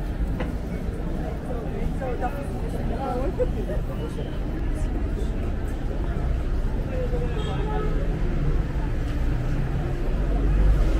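Traffic rumbles steadily in the background.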